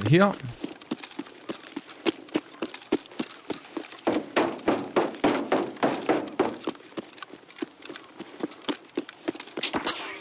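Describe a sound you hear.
Footsteps crunch steadily on gravel and hard ground.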